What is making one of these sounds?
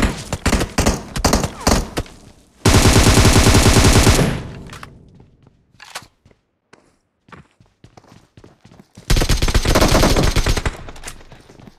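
Rapid gunfire bursts loudly in quick rounds.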